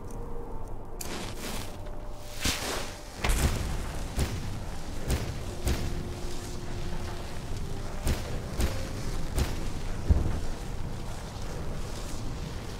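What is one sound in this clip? Magic spells hum and crackle softly.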